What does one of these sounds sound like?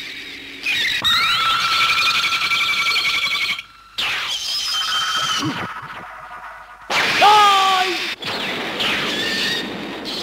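A creature speaks in a rasping voice.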